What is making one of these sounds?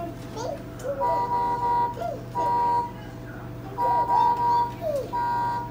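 A toy car plays a beeping electronic tune.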